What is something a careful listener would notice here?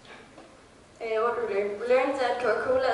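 A young woman speaks calmly into a microphone through a loudspeaker.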